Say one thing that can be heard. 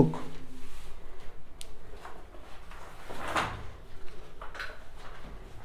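A young man speaks quietly and briefly into a close microphone.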